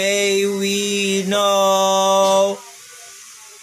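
A young man sings close by, holding long notes.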